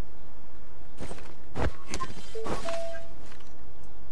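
Short electronic blips and chimes sound as a game menu opens and closes.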